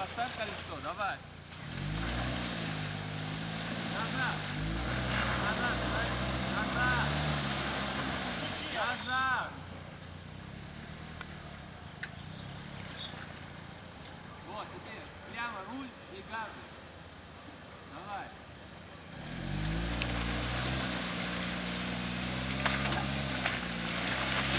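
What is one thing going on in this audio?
Car tyres spin and splash through mud and water.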